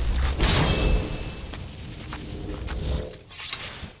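A magical summoning bursts with a loud whooshing rumble.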